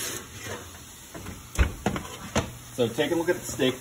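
An oven door bangs shut.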